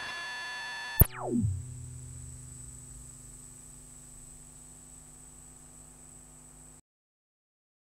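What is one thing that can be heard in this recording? A modular synthesizer sweeps sharply downward in pitch into a low hum that slowly fades.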